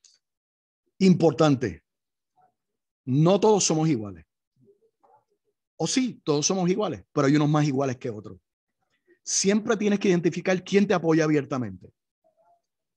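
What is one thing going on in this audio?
An elderly man speaks calmly through a microphone on an online call, in short phrases with pauses.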